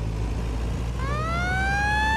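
A fire truck siren starts to wail, rising in pitch.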